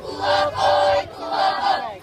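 A young boy shouts and laughs close by.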